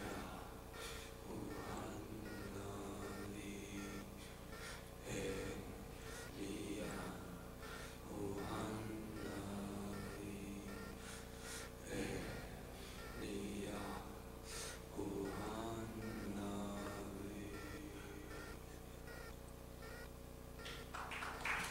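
Acoustic guitars play softly.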